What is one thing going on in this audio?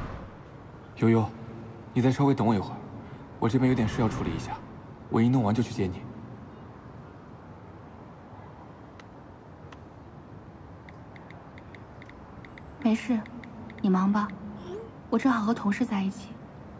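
A young woman speaks calmly and softly, close by.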